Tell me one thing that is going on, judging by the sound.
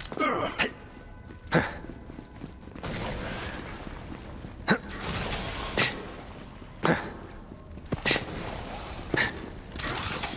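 Single gunshots bang out every second or so.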